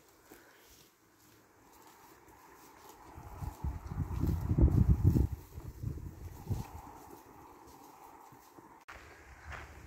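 Cattle hooves thud softly on a dirt track.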